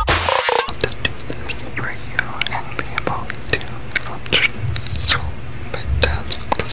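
Soft mouth clicks sound close to a microphone.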